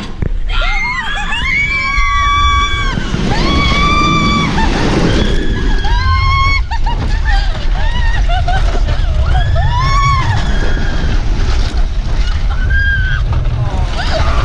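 Young women scream in long, high shrieks, again and again.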